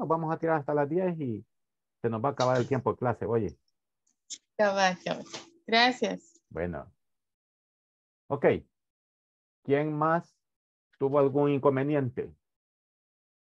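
A woman speaks calmly over an online call, close to the microphone.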